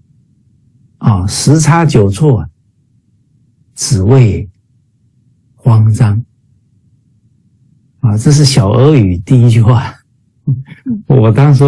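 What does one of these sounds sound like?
A middle-aged man speaks with animation over an online call, in short bursts with pauses.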